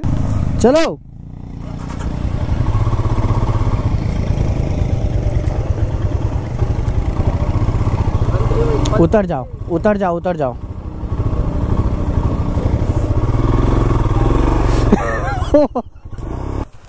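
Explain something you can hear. A motorcycle engine rumbles steadily over rough ground.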